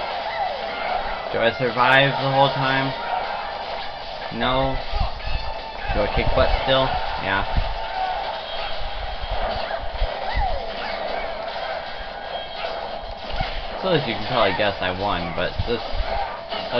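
Upbeat electronic music plays through a small loudspeaker.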